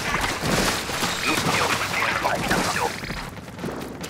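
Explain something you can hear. Paint sprays and splatters in quick wet bursts.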